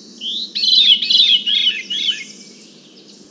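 A songbird sings a clear, swirling, downward-spiralling phrase close by.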